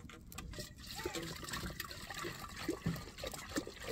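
Water sloshes in a plastic jerrycan.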